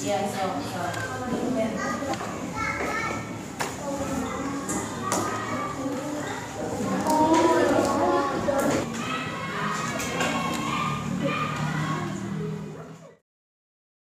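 Children chatter and talk over one another nearby.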